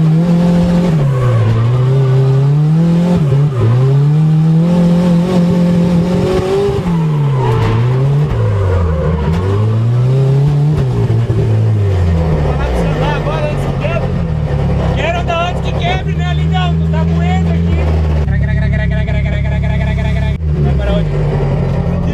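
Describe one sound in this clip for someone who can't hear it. A car engine roars loudly, revving up and down over and over.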